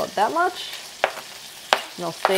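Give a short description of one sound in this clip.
Chopped onions tumble into a sizzling pan.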